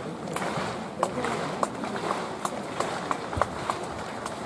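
Running footsteps thud quickly on a wet track.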